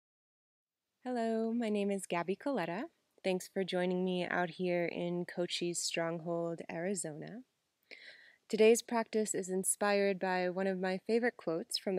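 A young woman speaks calmly and close by.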